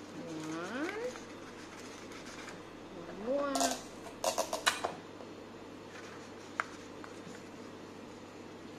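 A paper plate crinkles and taps as it is handled.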